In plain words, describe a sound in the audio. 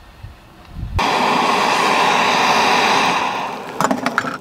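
A gas camping stove roars under a pot of boiling water.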